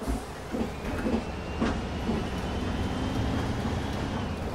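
A bus engine revs up as the bus pulls away.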